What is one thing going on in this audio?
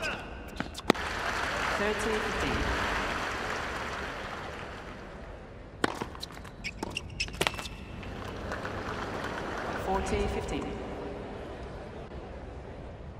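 A large crowd cheers and applauds in a big arena.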